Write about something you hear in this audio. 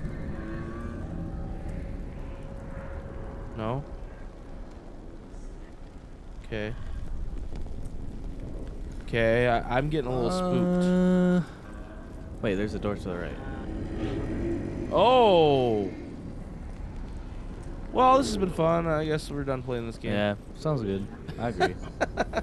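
A torch flame crackles and roars softly.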